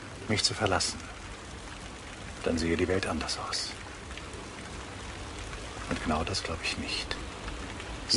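An older man speaks calmly in short phrases, close by.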